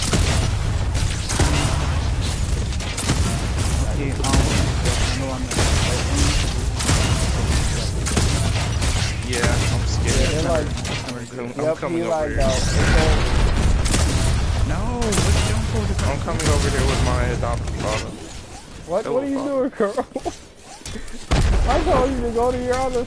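Blasts and weapon hits ring out in a fierce fight.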